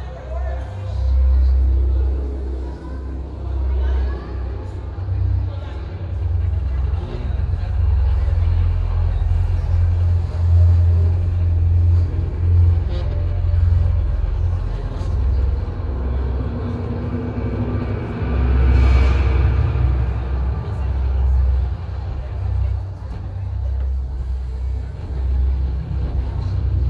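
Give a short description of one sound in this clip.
A crowd of guests murmurs and chatters in a large echoing hall.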